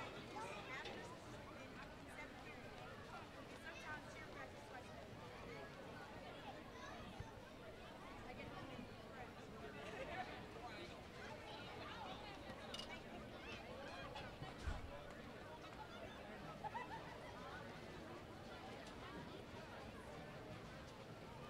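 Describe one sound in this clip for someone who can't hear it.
A crowd murmurs and chatters across a large open-air field.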